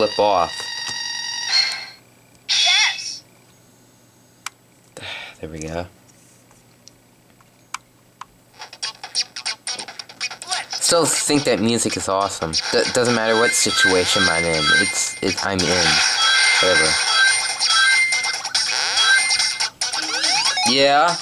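Electronic game music plays through a small speaker.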